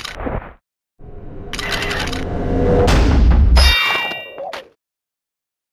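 A spell bursts with a loud whoosh.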